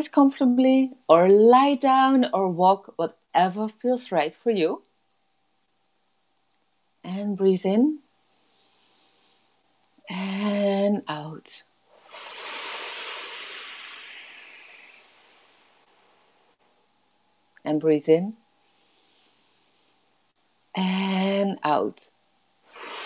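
A woman speaks with animation into a nearby microphone, in short bursts with pauses.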